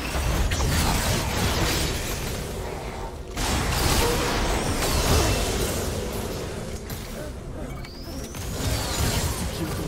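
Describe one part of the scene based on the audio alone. Magic spells burst and crackle in a busy fight between game characters.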